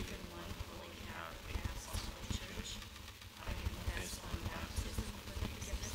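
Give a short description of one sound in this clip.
A man's footsteps cross a hard floor.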